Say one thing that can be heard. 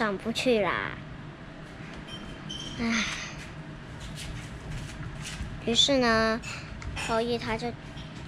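A young girl talks close by in a high voice, with pauses.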